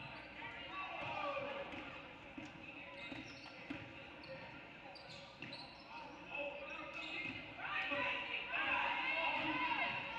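A crowd cheers and calls out in a large echoing gym.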